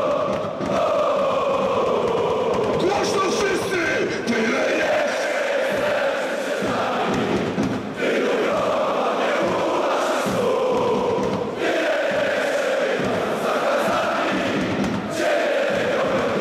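A crowd of fans claps in rhythm.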